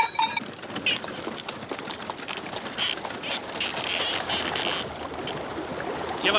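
A horse's hooves clop on a dirt path.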